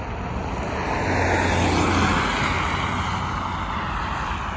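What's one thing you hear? A car swishes past close by on a road.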